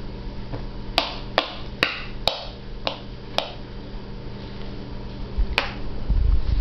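A baby smacks its lips while munching on food.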